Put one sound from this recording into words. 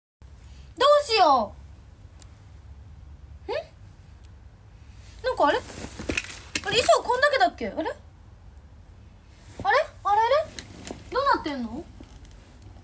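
A young woman talks close by with animation in short bursts.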